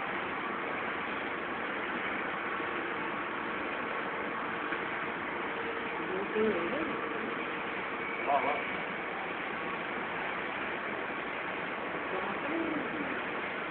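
A conveyor belt machine hums and rattles steadily in a large echoing hall.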